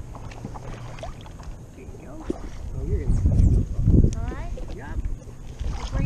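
A paddle dips and pulls through shallow water.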